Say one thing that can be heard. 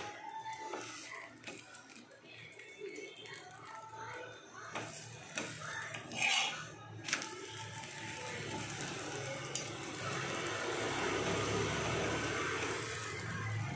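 A metal spatula scrapes against a pan.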